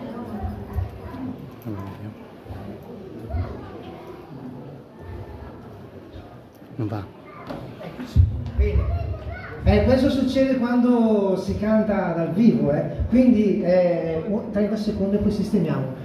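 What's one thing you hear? A woman speaks into a microphone over loudspeakers in an echoing hall.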